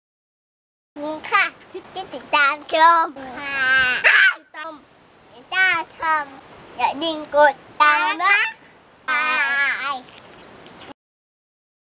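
Young girls sing loudly and excitedly close by.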